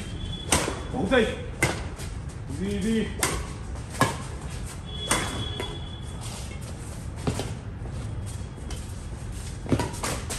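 Badminton rackets strike a shuttlecock with sharp pops.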